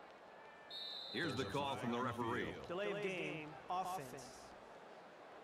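A man announces a penalty over a loudspeaker.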